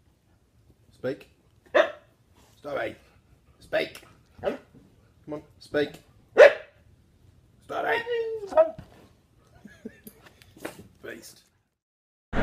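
A dog howls in short bursts close by.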